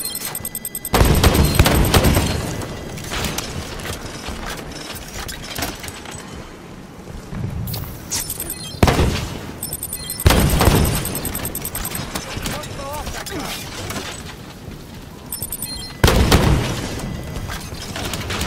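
A rifle fires in loud, sudden bursts.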